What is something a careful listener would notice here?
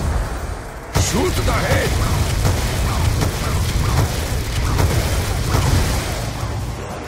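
A heavy gun fires in bursts.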